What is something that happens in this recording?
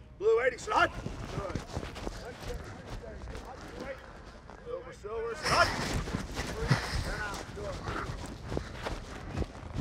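Football players' cleats thud on grass.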